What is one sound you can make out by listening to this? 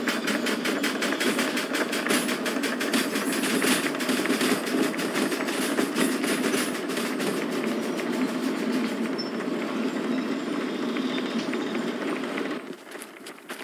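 A steam locomotive chugs and rumbles along the track.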